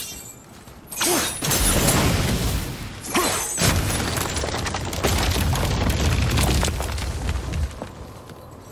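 A magic blast roars and crackles loudly.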